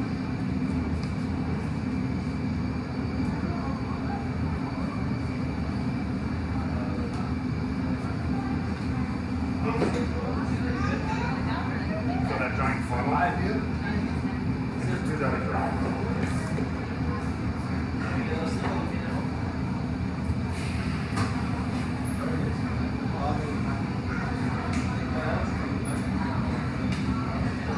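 Glass furnaces roar with a steady low hum.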